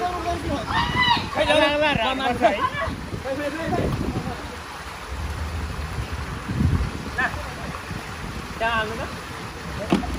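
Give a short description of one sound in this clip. Water pours and splashes steadily into a pool.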